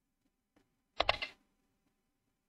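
A game piece clicks sharply onto a board.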